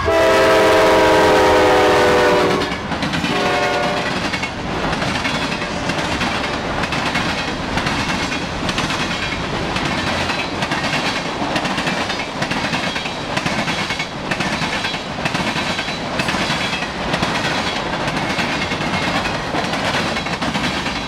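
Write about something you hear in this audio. A passing train roars steadily outdoors.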